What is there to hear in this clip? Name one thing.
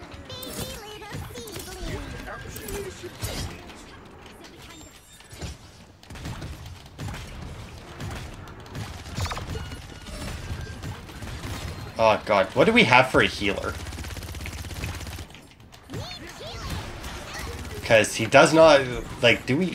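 Video game weapons fire with sharp zaps and magical bursts.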